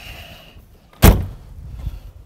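A car door opens and shuts with a thud.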